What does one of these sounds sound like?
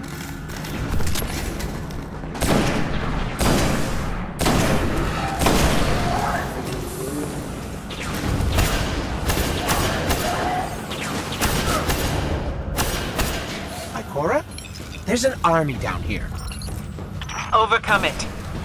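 Gunshots fire in loud bursts.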